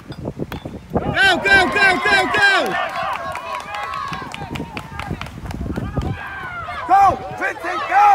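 Spectators cheer and shout loudly outdoors.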